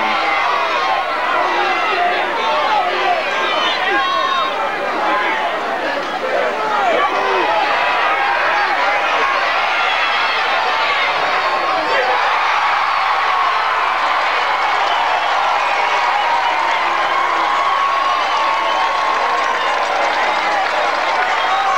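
A large outdoor crowd cheers and shouts throughout.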